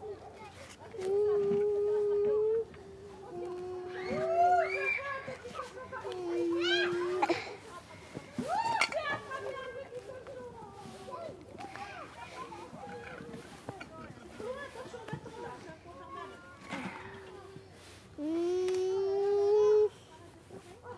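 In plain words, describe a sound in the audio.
A small child sings long held notes.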